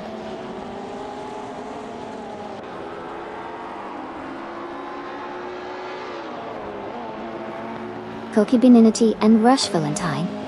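Racing car engines whine at high revs, rising and falling as the cars change gear.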